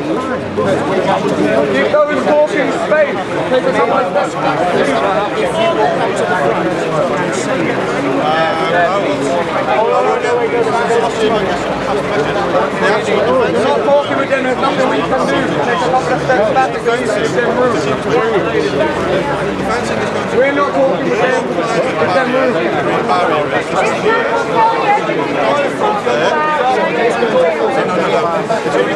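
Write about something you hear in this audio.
A large crowd of men and women shouts and chants loudly outdoors, close by.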